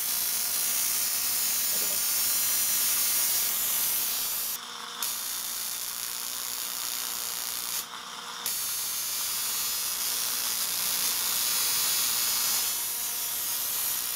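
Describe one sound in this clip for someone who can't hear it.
An electric spark crackles and hisses steadily.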